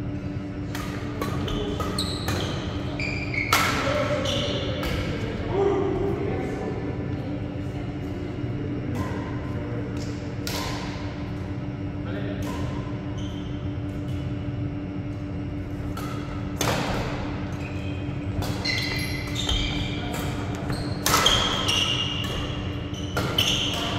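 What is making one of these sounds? Sounds echo around a large hall.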